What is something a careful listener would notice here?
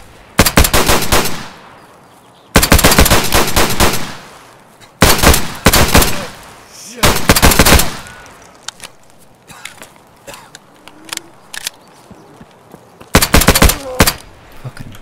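Rapid gunfire bursts ring out loudly, with echoing tails.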